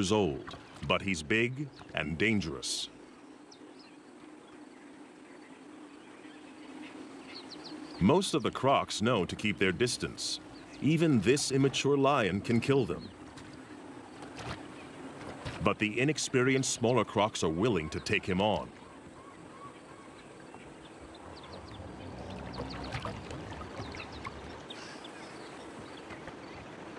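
A lion laps water from a pool.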